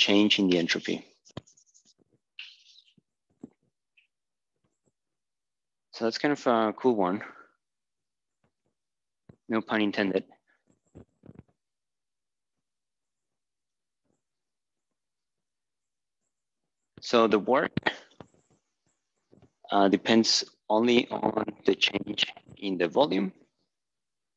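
A man speaks calmly, pausing often.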